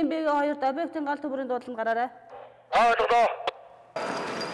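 A middle-aged woman speaks briskly into a handheld radio up close.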